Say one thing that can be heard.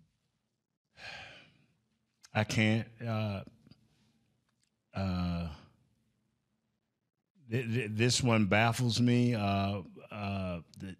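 A middle-aged man speaks into a microphone in a calm, conversational way, with pauses.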